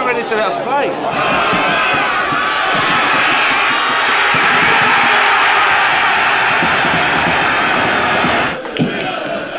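A crowd cheers outdoors.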